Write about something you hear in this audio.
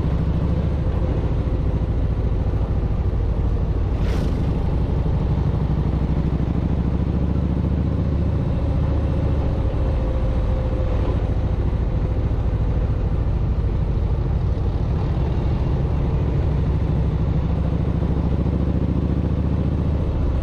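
A motorcycle engine rumbles steadily up close.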